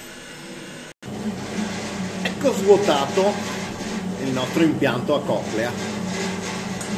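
A metal screw conveyor turns with a low drone and scraping.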